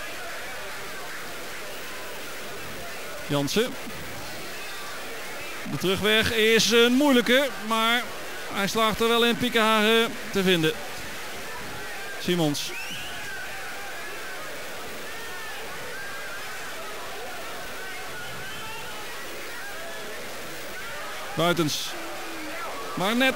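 A stadium crowd murmurs steadily in the distance.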